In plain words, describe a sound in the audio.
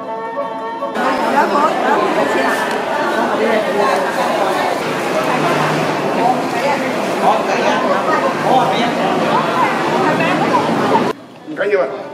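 A crowd of older men and women chatter indoors.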